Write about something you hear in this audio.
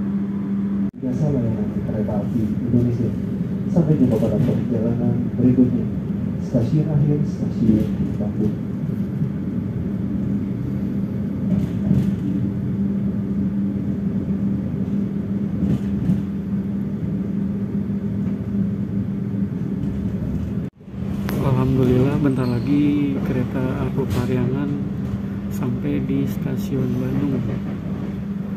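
A train rumbles and clatters steadily along the tracks.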